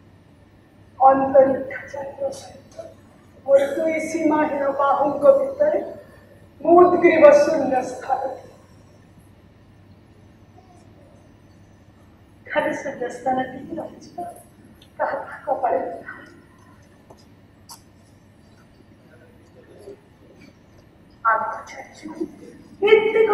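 A woman speaks dramatically in bursts with long pauses, in a hall with a slight echo.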